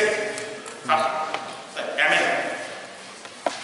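An elderly man speaks calmly through a lapel microphone.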